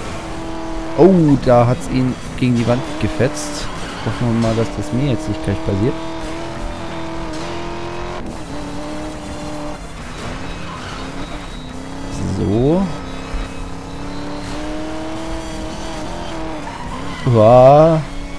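A car engine revs up and down sharply.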